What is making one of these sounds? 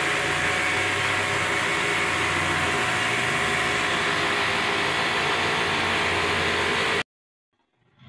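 A paint spray gun hisses steadily.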